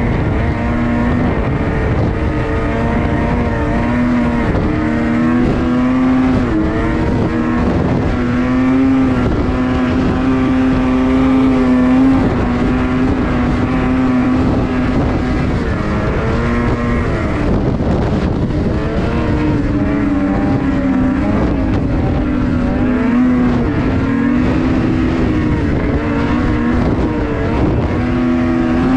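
A snowmobile engine drones close by, its pitch rising and falling as it speeds up and slows down.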